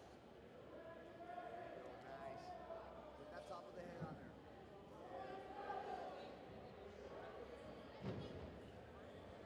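Men shout loud instructions from close by.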